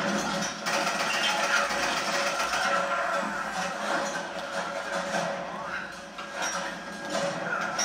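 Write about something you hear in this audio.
A video game's sounds play loudly from a television speaker.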